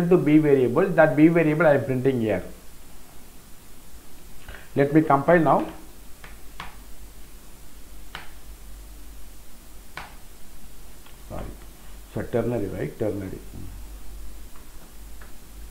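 Keys on a keyboard click as someone types.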